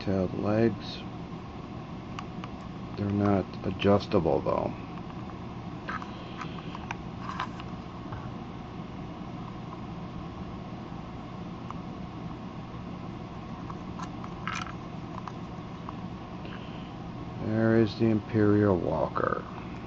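Plastic toy parts click and tap as they are handled.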